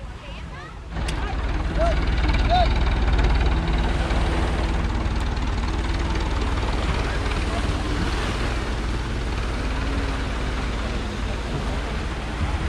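Many people chatter in the distance on a beach.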